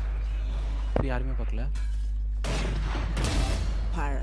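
A rifle fires a couple of shots.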